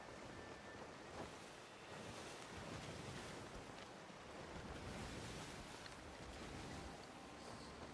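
Paper pages turn.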